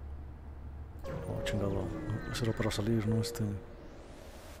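A spaceship's engines roar and whoosh as it jumps away.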